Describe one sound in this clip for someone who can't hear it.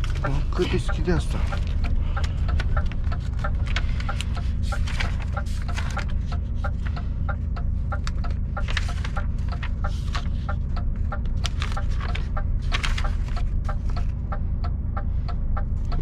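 Paper rustles and crinkles in someone's hands.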